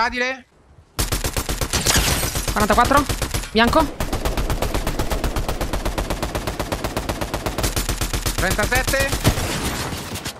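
Rapid gunfire rattles on and on.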